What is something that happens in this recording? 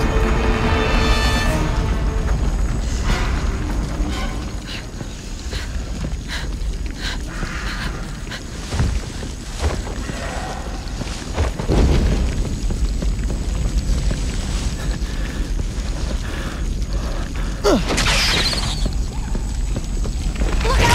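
Flames crackle and roar.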